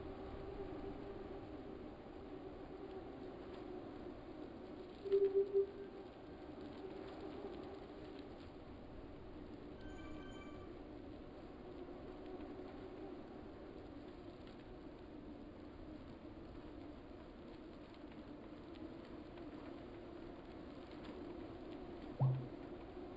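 An indoor bike trainer hums steadily as a man pedals.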